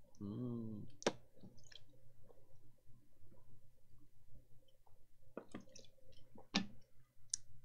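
A plastic bottle crackles as a young man drinks from it.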